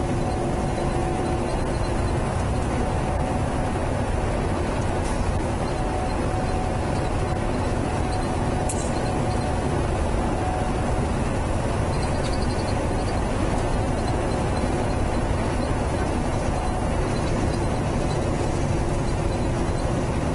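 A truck's diesel engine rumbles steadily inside the cab.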